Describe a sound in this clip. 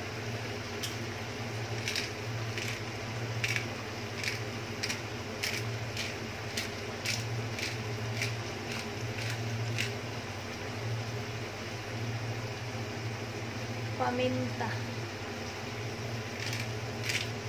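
Meat sizzles and crackles steadily in a hot pan.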